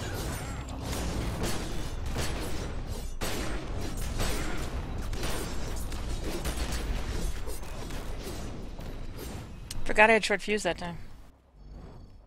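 Magic blasts and explosions crackle and boom in a game fight.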